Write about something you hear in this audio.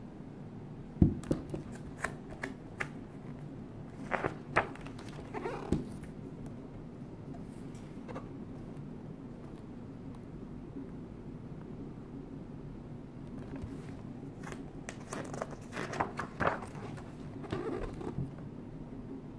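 Paper pages rustle and flip as a book's pages are turned.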